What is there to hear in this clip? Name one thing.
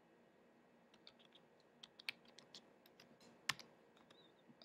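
Small metal parts click and tap on a wooden table.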